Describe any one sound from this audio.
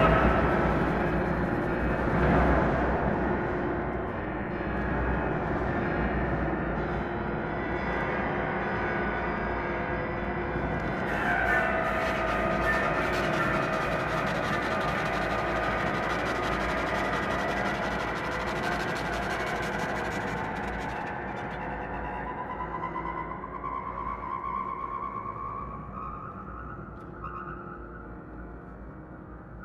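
A violin plays.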